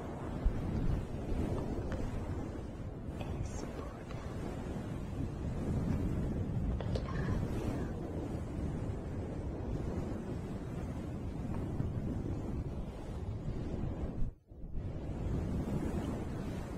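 Hands brush over a microphone with a soft rumbling rustle.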